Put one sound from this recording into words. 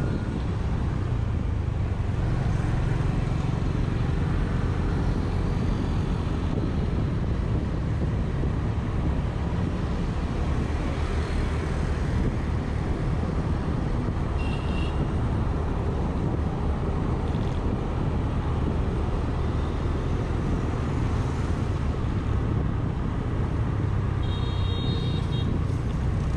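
A scooter engine hums steadily up close.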